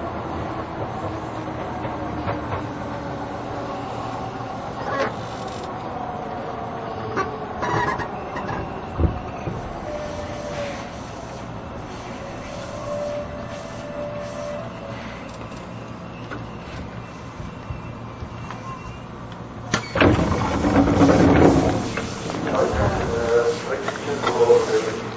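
A stopped train hums steadily nearby.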